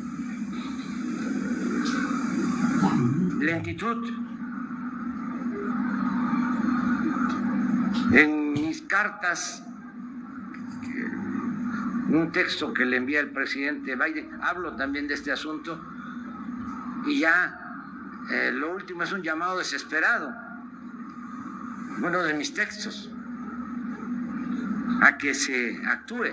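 An elderly man speaks slowly and deliberately into microphones, heard through a loudspeaker.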